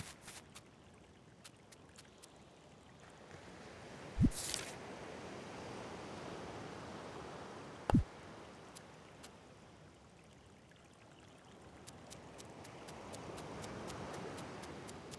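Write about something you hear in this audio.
Light footsteps tap quickly on sand.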